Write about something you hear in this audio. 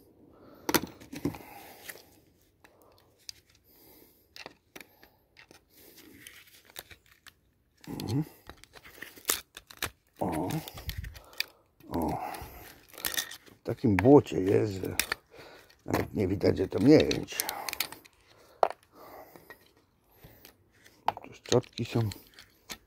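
Metal parts clink and scrape against each other close by.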